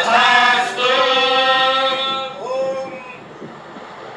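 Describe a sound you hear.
A man chants loudly in a sustained, melodic voice.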